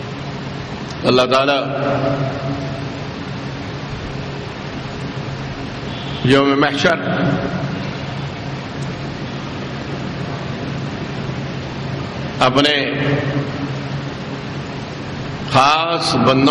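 A middle-aged man speaks slowly through a microphone and loudspeakers, in short phrases with long pauses.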